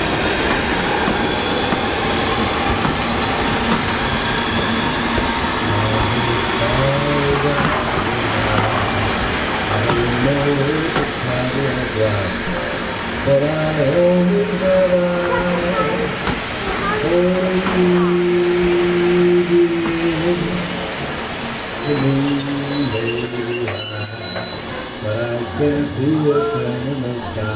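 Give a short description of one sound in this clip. A steam train rolls slowly past with a steady rumble and clatter.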